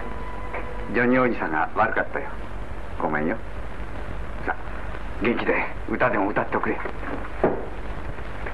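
A man speaks warmly and closely.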